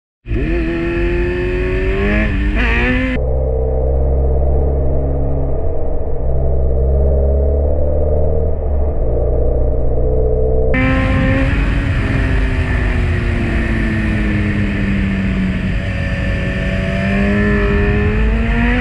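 A motorcycle engine hums and changes pitch.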